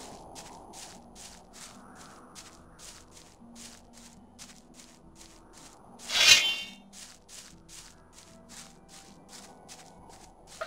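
Footsteps thud quickly and evenly on grass as a man runs.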